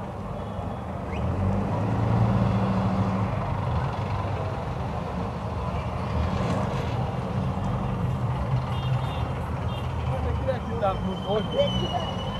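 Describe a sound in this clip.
Motorcycles rumble past close by.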